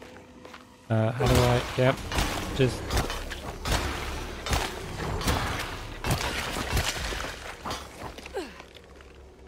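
Heavy metal blows thud and smack against flesh in quick succession.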